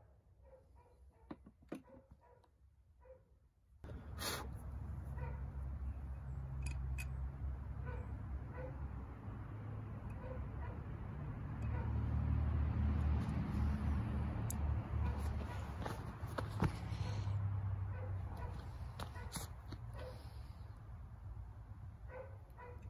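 Metal parts of a pistol click as they are handled.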